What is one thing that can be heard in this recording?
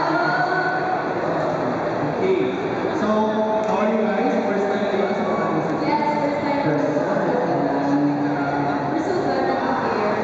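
A man speaks with animation through a microphone over loudspeakers in a large echoing hall.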